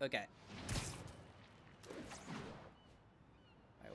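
Air rushes past in quick whooshes.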